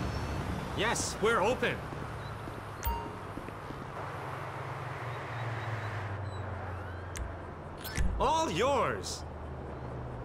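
A man speaks calmly across a counter.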